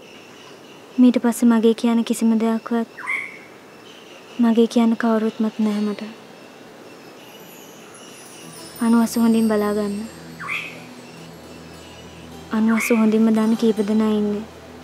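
A young woman speaks softly and calmly, close by, in short phrases.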